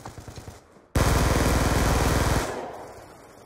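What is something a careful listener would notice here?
A gun fires in a rapid, loud burst.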